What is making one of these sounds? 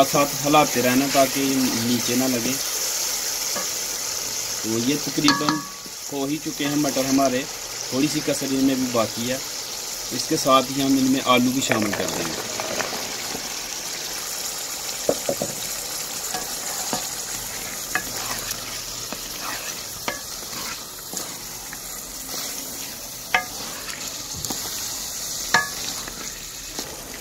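Food sizzles and bubbles steadily in a metal pot.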